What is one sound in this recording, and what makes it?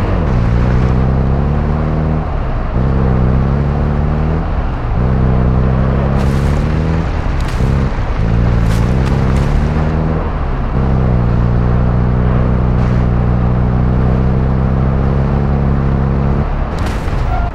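A truck engine roars and changes pitch as it drives.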